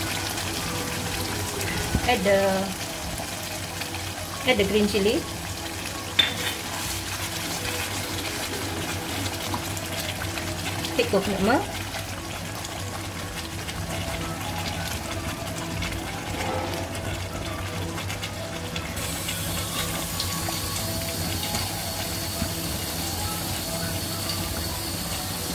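Thick sauce bubbles and sizzles steadily in a hot pan.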